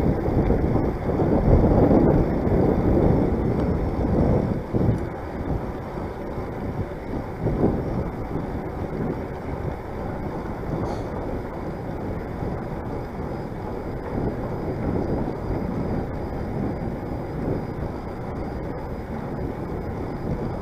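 Bicycle tyres hum steadily on a paved path.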